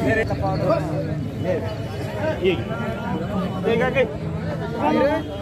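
A crowd of men chatters outdoors in the background.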